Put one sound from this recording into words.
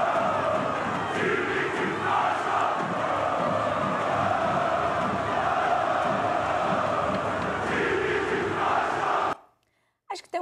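A large stadium crowd chants loudly.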